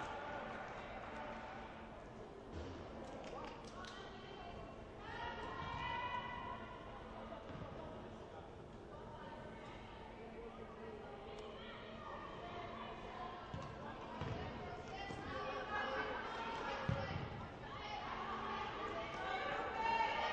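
Young women shout to each other across a large echoing hall.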